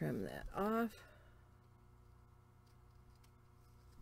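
Small scissors snip through paper.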